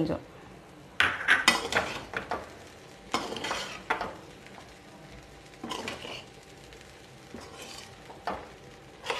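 A metal spatula scrapes and stirs rice in a steel wok.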